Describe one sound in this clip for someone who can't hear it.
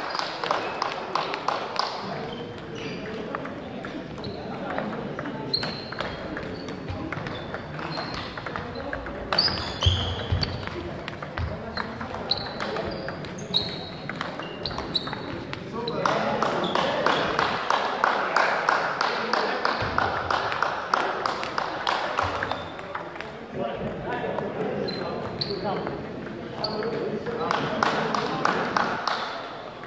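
Table tennis balls click against paddles and the table again and again in a large echoing hall.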